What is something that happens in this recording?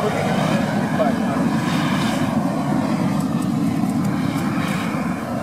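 A gas torch roars steadily outdoors.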